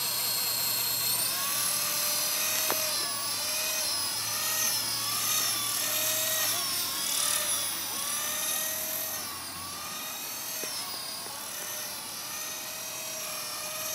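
A small model helicopter whines overhead, its pitch wavering up and down.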